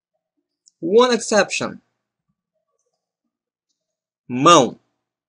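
A man speaks clearly and deliberately into a close microphone, in short phrases with pauses.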